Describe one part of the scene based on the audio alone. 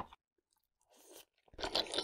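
A woman slurps food close to a microphone.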